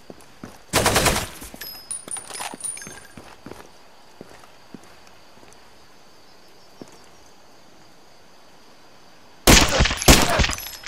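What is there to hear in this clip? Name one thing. A rifle fires short, loud bursts of shots.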